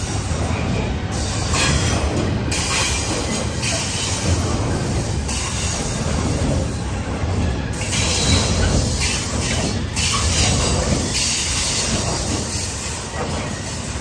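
A long freight train rumbles past close by.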